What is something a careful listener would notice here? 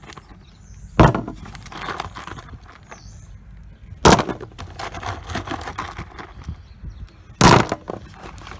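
Stones clunk one by one onto a plastic lid.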